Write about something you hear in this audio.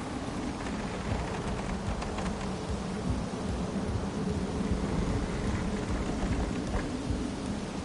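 Footsteps thud quickly across a wooden plank bridge.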